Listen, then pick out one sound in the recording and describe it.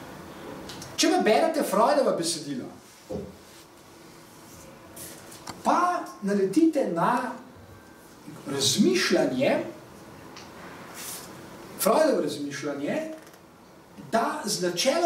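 A middle-aged man speaks calmly and thoughtfully in bursts, close by.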